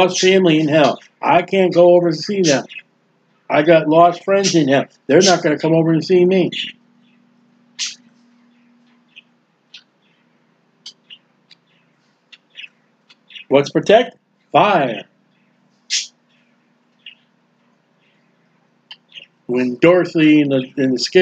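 A man speaks calmly and closely into a microphone, with pauses.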